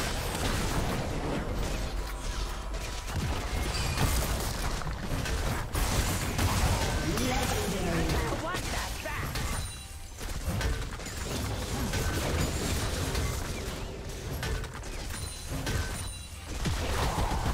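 Spell effects and weapon hits crackle and clash in a video game battle.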